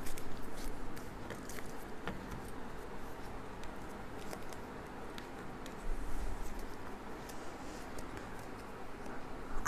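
Cards riffle and slap softly as they are shuffled by hand.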